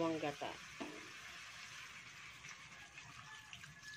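Liquid pours into a pan.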